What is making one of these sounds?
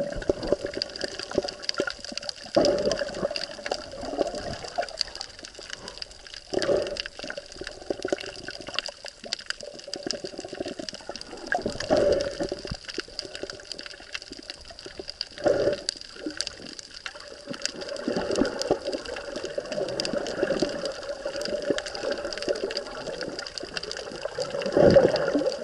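Water swishes and murmurs, heard from underwater.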